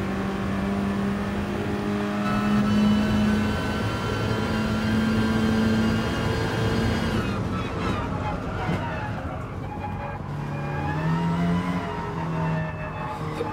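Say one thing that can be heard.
A racing car engine roars at high revs, rising and falling as the car accelerates and brakes.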